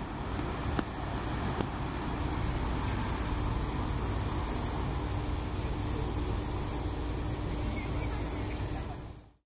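Steam hisses steadily from a locomotive.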